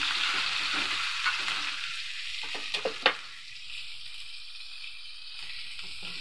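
A metal spatula scrapes and knocks against a wok.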